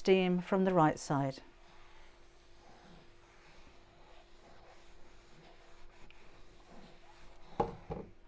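A hand softly rubs and smooths fabric.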